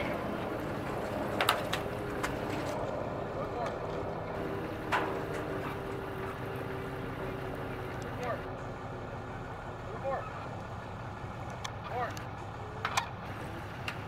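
Water laps gently against a dock.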